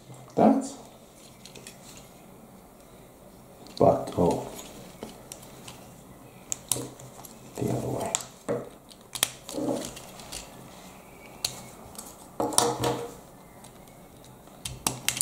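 Plastic toy bricks click and snap together.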